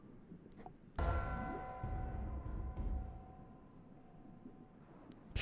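A video game plays a sustained musical chime.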